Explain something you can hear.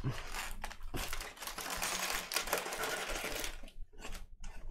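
Foil wrappers crinkle as packs are handled.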